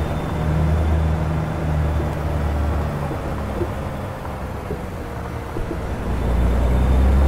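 A diesel cabover semi truck engine drones, heard from inside the cab.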